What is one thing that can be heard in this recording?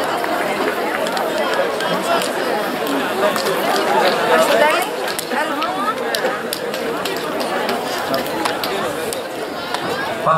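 A crowd of men and women chatter outdoors at a distance.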